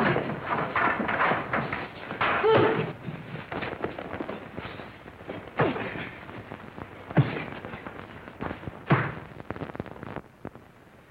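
Men scuffle and struggle loudly.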